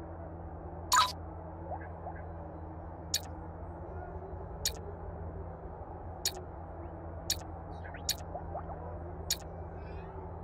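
Menu clicks tick sharply, one at a time.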